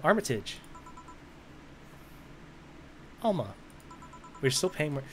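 Soft electronic blips tick rapidly in a steady run.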